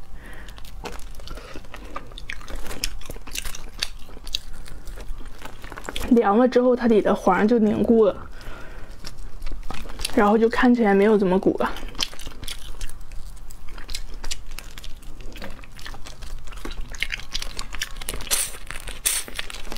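A young woman chews and slurps wetly close to a microphone.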